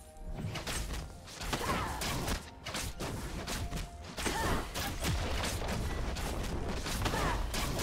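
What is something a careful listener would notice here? Blows and blasts strike in quick bursts.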